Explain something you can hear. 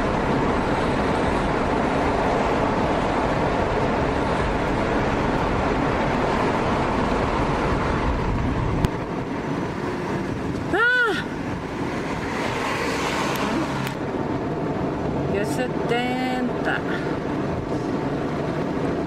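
Car tyres roar steadily on a road, loud and echoing at first, then quieter.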